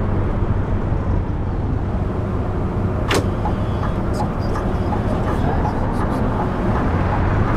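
A bus engine rumbles low and steady while driving slowly.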